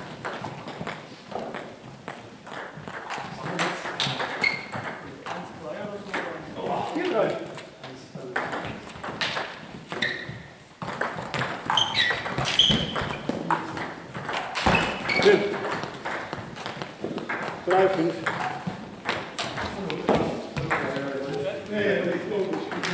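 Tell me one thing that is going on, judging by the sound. A ping-pong ball clicks sharply on paddles and a table in an echoing hall.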